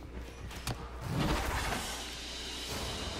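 A shimmering energy whoosh swells up briefly.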